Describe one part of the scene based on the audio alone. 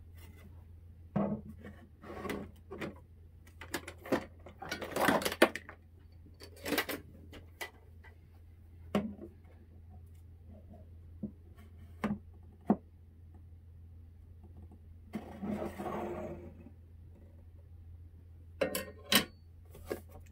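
A clamp clicks and knocks against a wooden board.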